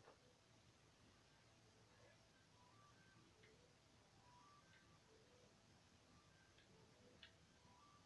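A game menu beeps softly as options change.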